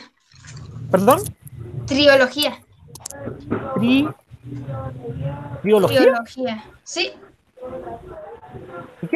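A young girl talks animatedly over an online call.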